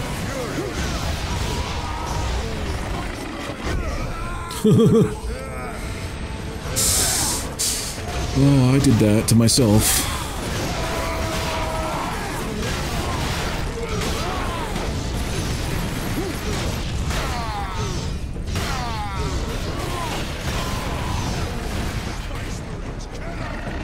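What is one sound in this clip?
Heavy blades slash and strike in a frantic fight.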